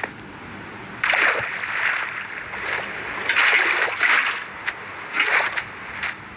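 Water splashes and swishes as a figure swims.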